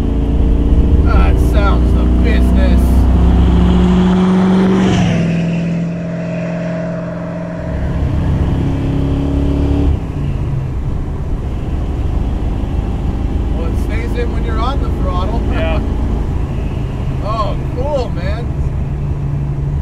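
A man talks over the engine noise inside a car.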